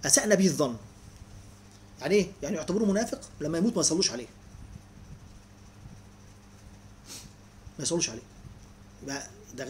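A middle-aged man speaks calmly and close up, with pauses.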